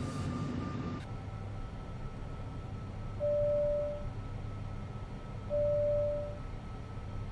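A low, steady hum fills an airliner cockpit.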